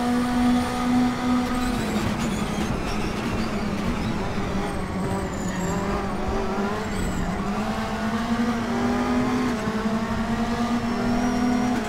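A racing car engine roars steadily, its pitch dipping and rising as the car slows and speeds up.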